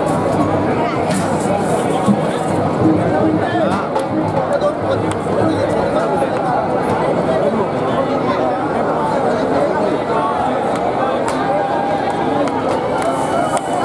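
A crowd of men and women chatters and calls out all around, outdoors.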